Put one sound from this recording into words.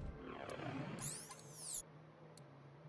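An electronic sweep sounds as a menu opens.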